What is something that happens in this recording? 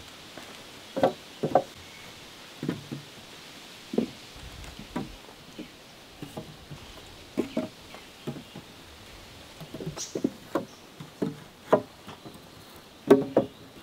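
Wooden poles knock against each other now and then.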